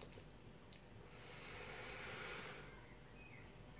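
A man blows out a long, soft breath.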